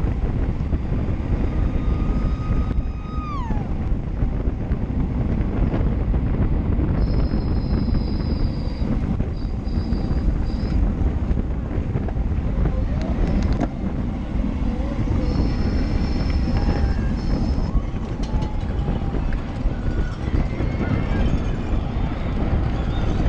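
Wind rushes loudly past, as if heard while riding fast outdoors.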